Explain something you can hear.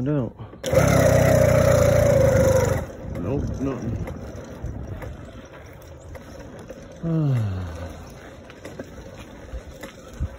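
A bicycle's tyres roll over pavement.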